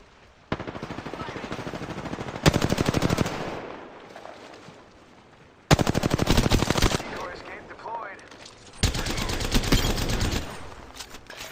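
Rapid gunfire bursts out in quick, loud volleys.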